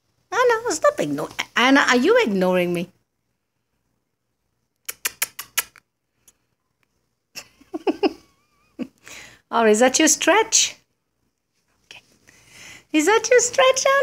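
A cat meows nearby.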